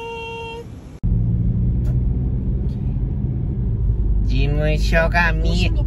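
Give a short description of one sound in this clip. A car interior rumbles steadily with a low engine drone.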